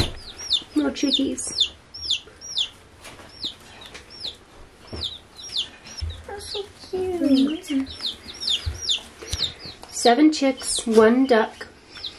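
Baby chicks peep rapidly and continuously, close by.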